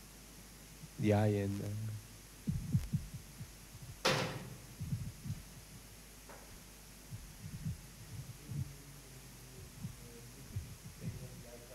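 A middle-aged man speaks calmly.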